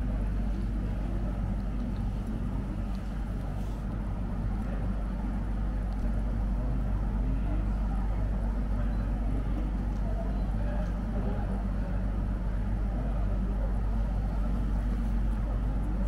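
A crowd of women murmurs quietly nearby.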